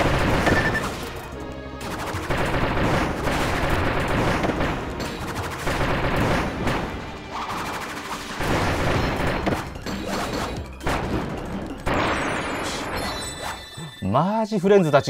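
Game music plays loudly with a busy beat.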